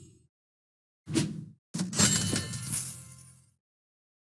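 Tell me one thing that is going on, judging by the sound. Coins jingle and chime in quick bursts.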